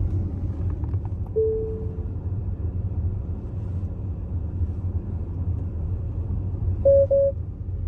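A car's cabin hums with a low, steady road rumble as it drives slowly.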